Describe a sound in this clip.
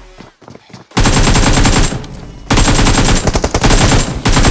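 Rapid gunfire rattles up close.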